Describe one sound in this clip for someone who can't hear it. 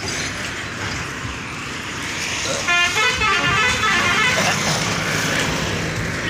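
A motorbike engine buzzes past.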